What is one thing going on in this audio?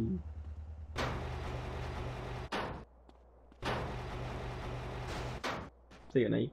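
A metal garage door rattles as it rolls open and shut.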